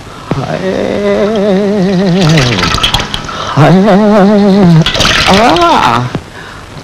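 A man sings slowly with feeling, close by.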